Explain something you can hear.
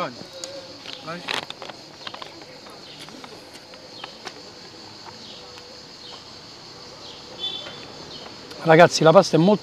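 A man slurps and chews food close to a microphone.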